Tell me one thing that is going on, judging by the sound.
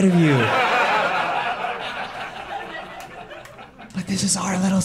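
An audience laughs loudly in a room.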